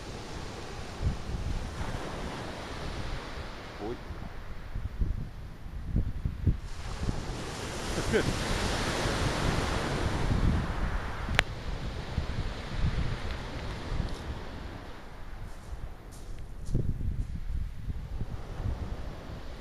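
Waves break and wash onto a pebble beach.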